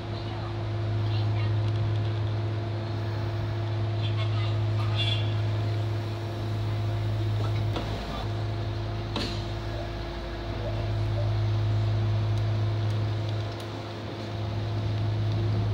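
Train wheels click and rumble over the rails.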